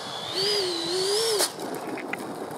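A small jet engine whines loudly and wavers in pitch, then cuts off abruptly.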